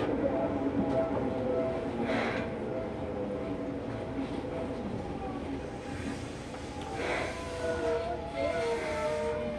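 A train's electric motor hums with a steady whine.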